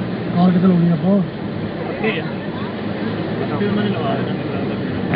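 People talk nearby outdoors.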